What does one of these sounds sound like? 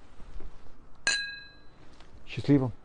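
A glass clinks with a short ringing tone.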